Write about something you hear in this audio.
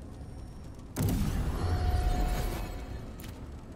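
A magical whoosh swells and fades as an item is upgraded.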